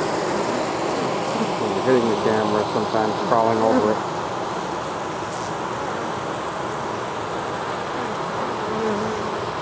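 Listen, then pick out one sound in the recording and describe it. A swarm of bees hums and buzzes close by.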